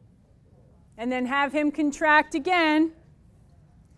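A young woman speaks clearly and calmly close by.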